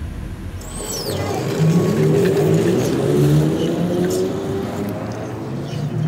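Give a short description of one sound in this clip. Traffic rumbles along the street.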